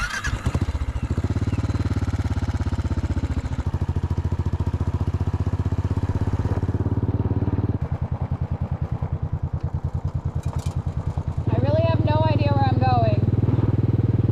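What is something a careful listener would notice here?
A motorcycle engine thumps as the bike rides along.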